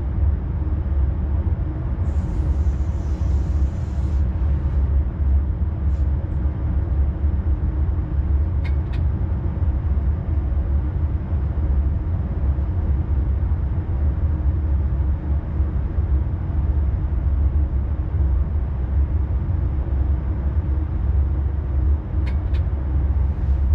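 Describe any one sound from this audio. A train rumbles steadily along the rails with a deep, low drone.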